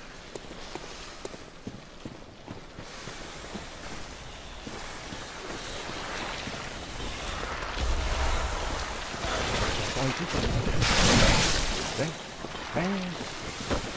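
Footsteps crunch through grass and undergrowth.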